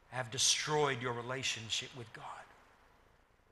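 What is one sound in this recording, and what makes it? A middle-aged man speaks calmly and clearly through a microphone.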